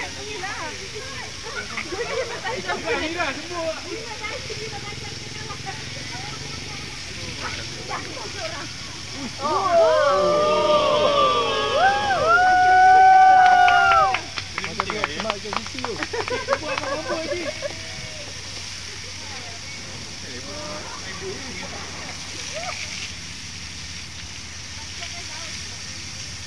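Water sprays from a fire hose and splashes onto wet pavement in the distance.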